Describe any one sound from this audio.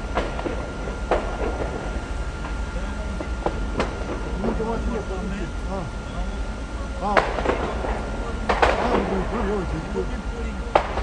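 A large fire crackles and pops in the distance.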